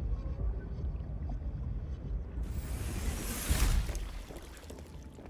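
A deep underwater rumble drones.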